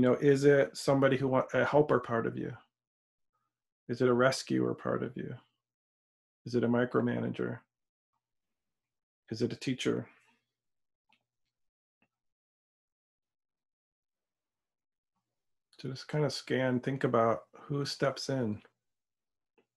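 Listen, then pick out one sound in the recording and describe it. A middle-aged man speaks calmly and close to the microphone, with pauses.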